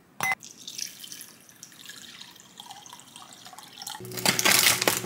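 Water pours into a glass bowl.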